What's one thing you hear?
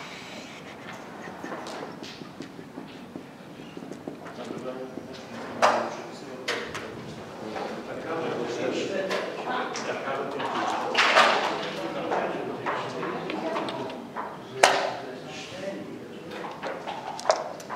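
Game pieces click against a wooden board.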